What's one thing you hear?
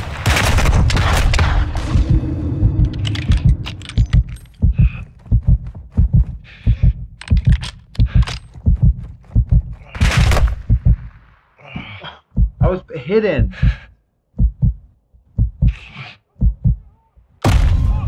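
Gunshots bang repeatedly in quick bursts.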